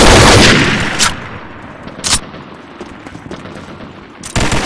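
Sharp gunshots crack a few times.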